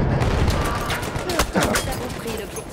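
Rifle shots crack in an echoing tunnel.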